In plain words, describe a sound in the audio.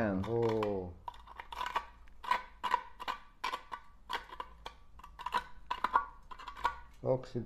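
A screw clicks and scrapes as it is twisted into a metal lid.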